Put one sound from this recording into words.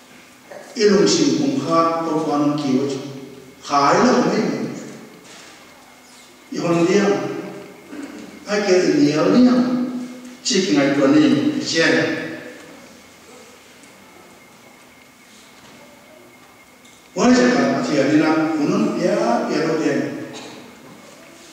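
An elderly man speaks calmly into a microphone, in bursts with pauses, in a reverberant room.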